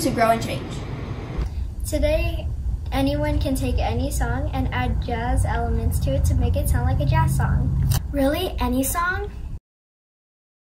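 A young girl sings close to a microphone.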